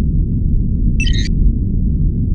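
A short bright chime sounds.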